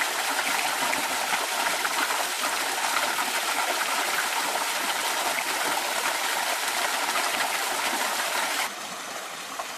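Water splashes down a rock face into a pool, close by.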